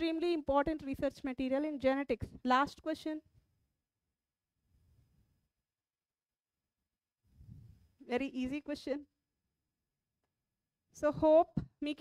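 A woman speaks clearly into a headset microphone, in pauses.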